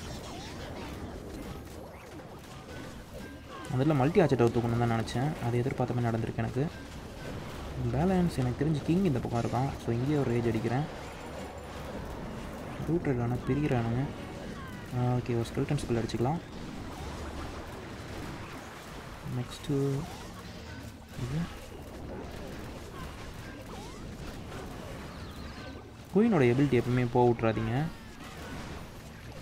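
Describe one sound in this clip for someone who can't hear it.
Game battle sounds of small blasts and clashes go on throughout.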